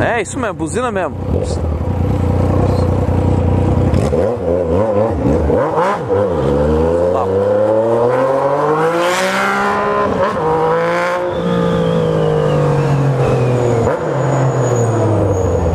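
A motorcycle engine revs up and down as the bike rides along.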